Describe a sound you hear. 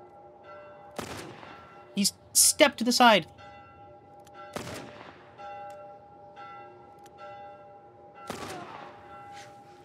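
Pistol shots crack out a few times, each with a short echo.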